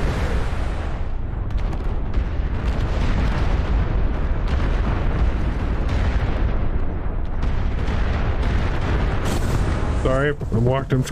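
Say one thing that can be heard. Explosions boom and rumble heavily.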